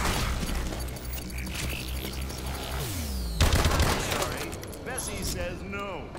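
A gun fires in quick bursts of shots.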